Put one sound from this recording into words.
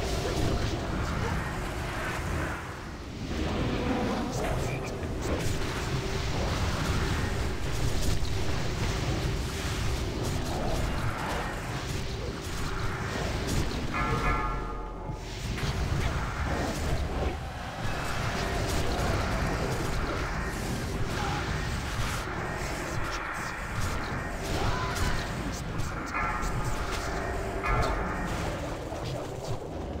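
Magic spells crackle and boom in a fast fight.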